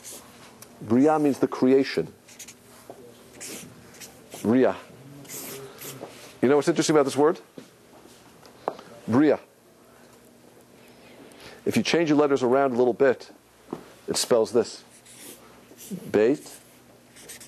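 A man speaks calmly in short phrases in an echoing room.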